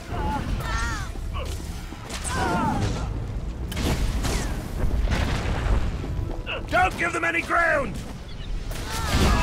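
Fire and energy blasts crackle and burst.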